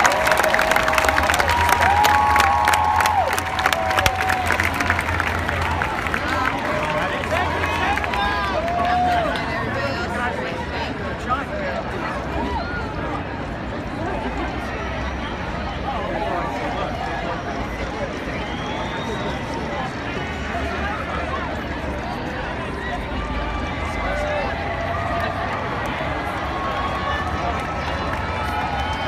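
A large outdoor crowd cheers and screams loudly.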